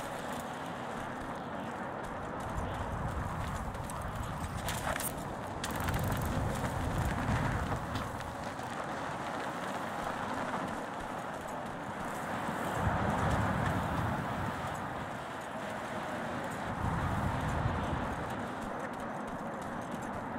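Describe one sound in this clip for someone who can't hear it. Footsteps crunch on sand and gravel as a man runs.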